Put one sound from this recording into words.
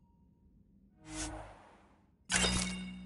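A game menu chimes as a trade confirmation box opens.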